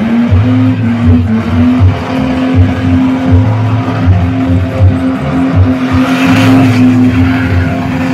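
Tyres squeal and spin on asphalt as a car drifts.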